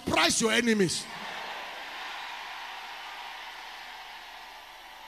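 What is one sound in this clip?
A large crowd cheers and murmurs.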